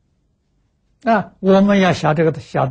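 An elderly man speaks calmly into a close microphone.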